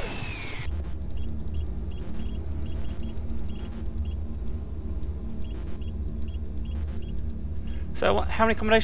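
Keypad buttons beep as a code is entered.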